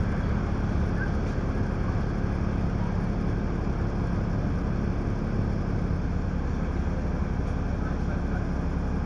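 A bus engine rumbles steadily from inside as the bus drives along.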